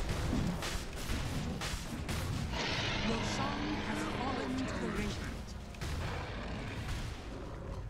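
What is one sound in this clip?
Game spell effects crackle and burst in a fight.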